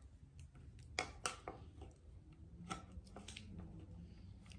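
Small parts click and tap.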